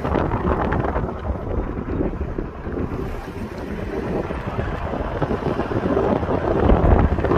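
Wind rushes past an open car window.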